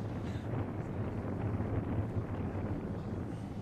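A small propeller plane drones overhead.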